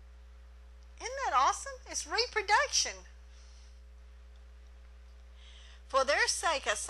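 A middle-aged woman speaks with animation through a microphone.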